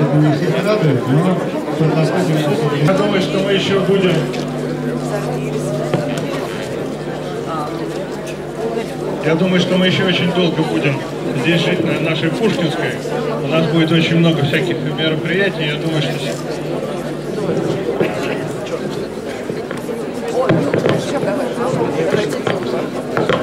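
A crowd of people murmurs and talks outdoors.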